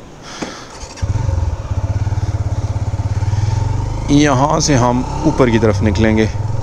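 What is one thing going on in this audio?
A motorcycle engine thumps louder as the bike rides off along the road.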